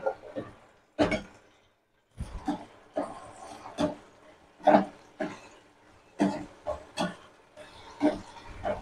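A metal spoon scrapes and clanks against a pan.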